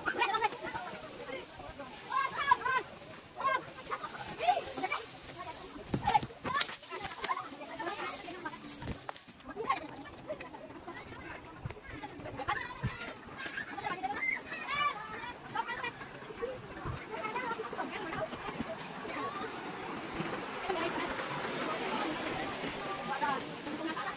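Children chatter and call out nearby outdoors.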